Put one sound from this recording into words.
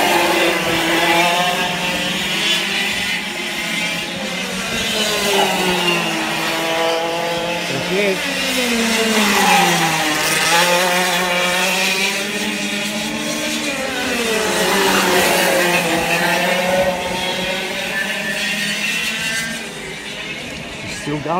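A kart engine whines loudly, rising and falling in pitch as it races past.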